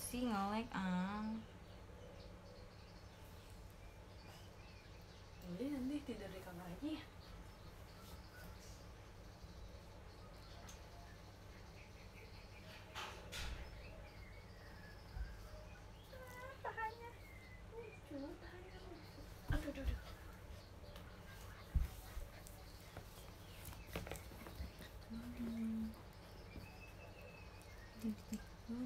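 A young woman speaks softly and close by, with long pauses.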